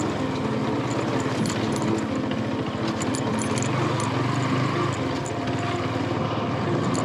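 A motorcycle rattles and clatters over a bumpy dirt track.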